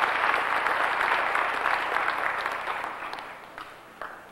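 An audience applauds loudly in a large hall, then the clapping fades.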